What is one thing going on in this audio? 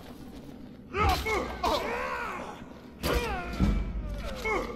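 A sword strikes a body with a heavy thud.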